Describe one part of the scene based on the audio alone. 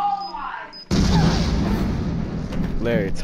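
A bomb explodes with a loud boom close by.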